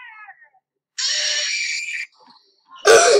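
A cartoon fawn yells loudly.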